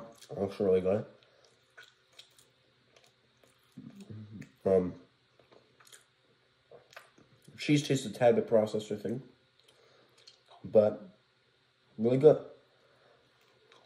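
A teenage boy crunches food while chewing.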